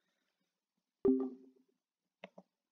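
A short electronic chime sounds as a call ends.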